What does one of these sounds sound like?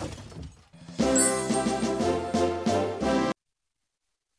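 A short, cheerful victory jingle plays.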